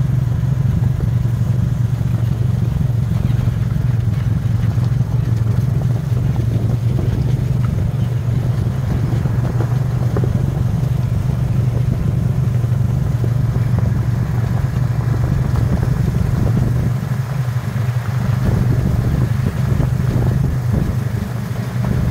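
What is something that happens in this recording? An off-road vehicle's engine drones steadily.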